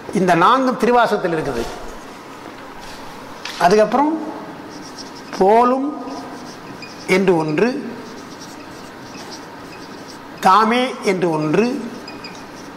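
An elderly man recites slowly and expressively into a microphone, with pauses between phrases.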